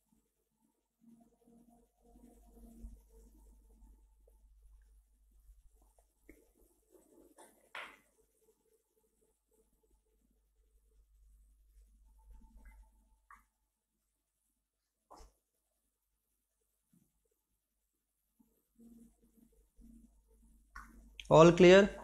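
A man speaks quietly and briefly, close by.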